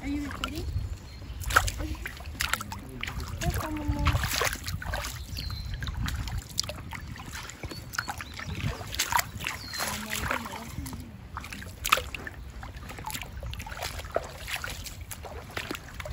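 Bare feet splash through shallow water.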